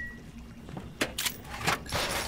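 A game weapon clicks and clanks as it is reloaded.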